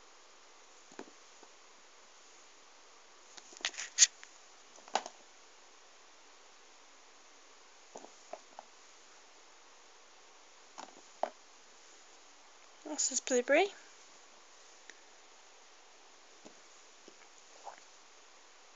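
Small rubber erasers knock and tap against each other as they are handled.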